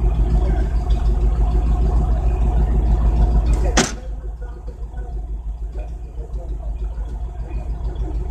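A car engine idles nearby outdoors.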